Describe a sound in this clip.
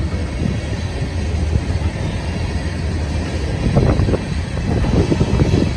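A freight train rumbles steadily past on the rails.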